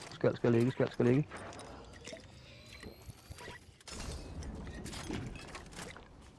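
A potion is gulped down with a soft fizzing.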